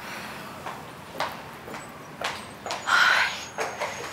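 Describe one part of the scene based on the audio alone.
Footsteps tap on a hard floor as a woman walks away.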